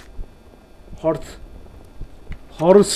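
A young man speaks briefly into a close microphone.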